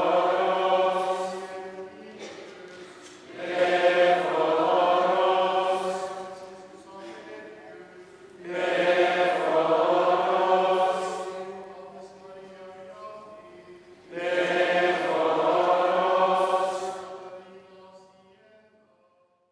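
A choir of men and women sings a slow hymn in a large echoing hall.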